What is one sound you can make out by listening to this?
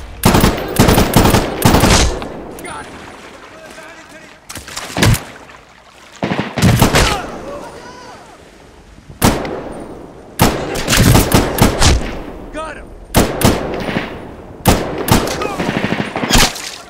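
A gun fires in short bursts of loud shots with echoing ringing.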